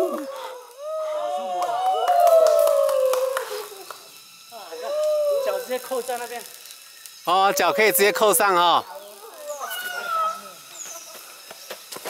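A group of men and women sing and call out nearby.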